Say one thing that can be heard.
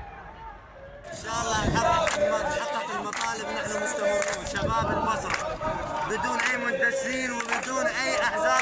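A young man speaks loudly and with animation close to a microphone.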